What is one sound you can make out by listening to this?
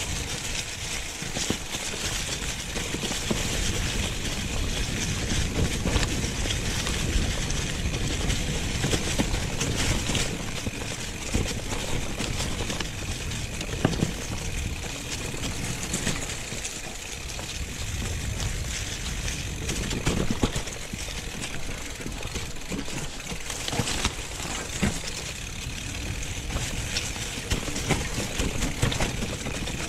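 Bicycle tyres crunch and rustle over dry leaves and dirt.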